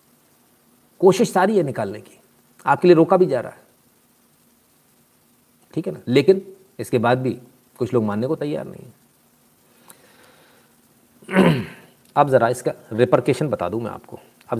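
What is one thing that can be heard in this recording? A middle-aged man speaks calmly and steadily, close to the microphone.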